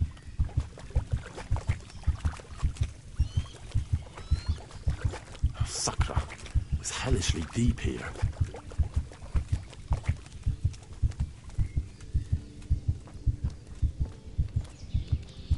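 Heavy footsteps thud at a steady walking pace.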